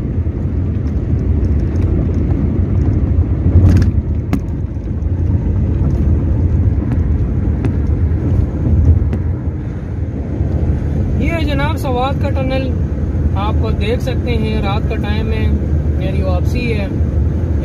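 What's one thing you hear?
A car engine hums and tyres rumble steadily on the road.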